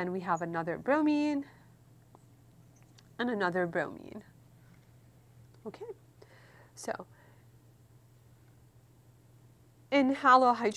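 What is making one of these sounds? A woman speaks calmly and clearly into a close microphone, with pauses.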